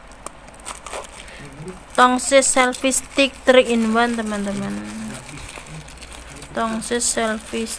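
Plastic wrapping tears open.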